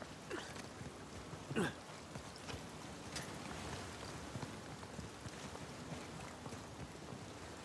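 Footsteps run over grass and stone.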